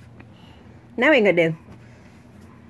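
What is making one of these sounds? A baby squeals briefly close by.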